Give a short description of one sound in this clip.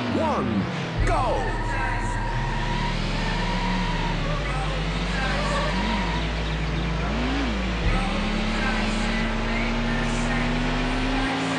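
A car engine roars steadily as the car speeds along a road.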